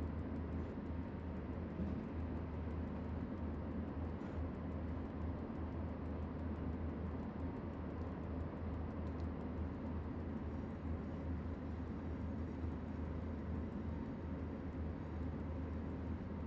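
A locomotive's engine rumbles low and steady while the train rolls along the track.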